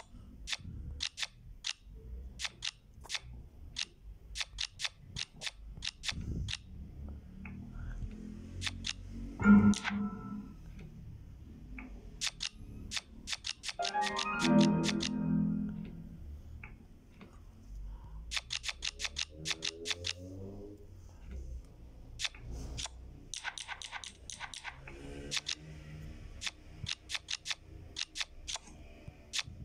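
Playing cards snap into place with short, sharp clicks.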